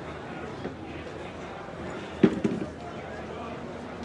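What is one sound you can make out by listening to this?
A plastic chair scrapes and knocks on a stone floor close by.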